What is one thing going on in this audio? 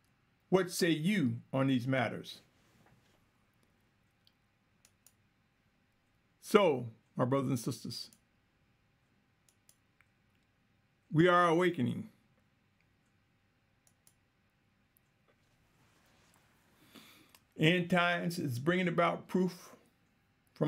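A middle-aged man speaks calmly into a nearby microphone, in short phrases with pauses.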